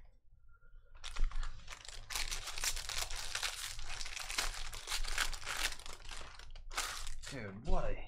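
A foil pack crinkles and tears as it is opened.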